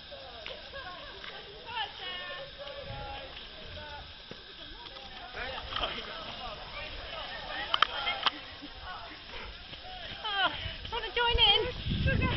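A group of men and women call out and chatter outdoors.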